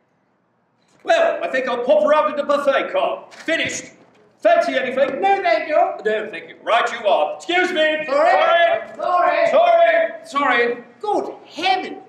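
Men speak theatrically, heard through a microphone.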